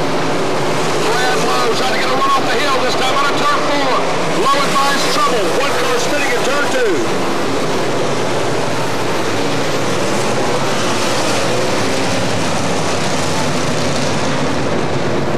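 Race car engines roar loudly and rev up and down.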